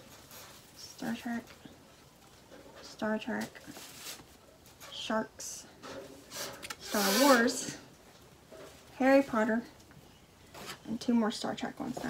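A young woman talks calmly close by, in short bursts.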